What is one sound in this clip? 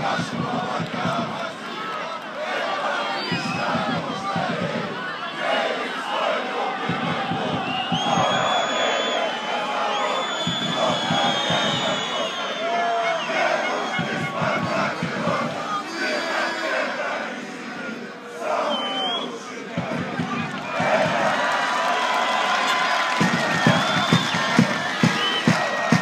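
A crowd of men chants and cheers loudly outdoors.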